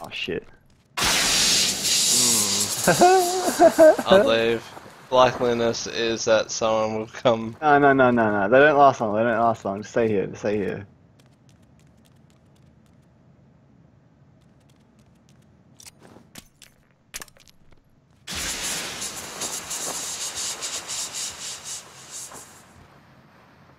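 Gas hisses loudly as it spreads.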